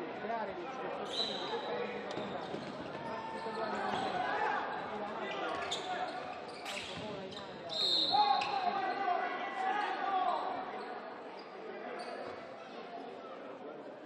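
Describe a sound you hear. A ball thumps on a wooden floor.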